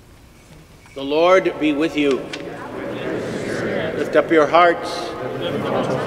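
An elderly man chants into a microphone in a large echoing hall.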